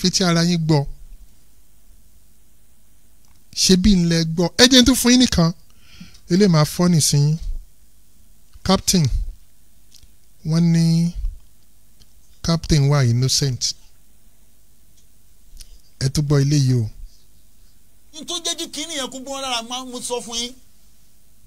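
A man recites in a steady, chanting voice into a microphone, in short phrases with pauses between them.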